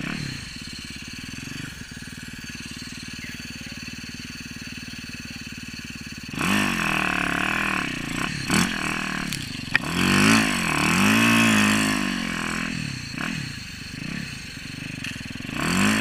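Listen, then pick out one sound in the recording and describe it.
A dirt bike engine idles, then revs hard in rising and falling bursts.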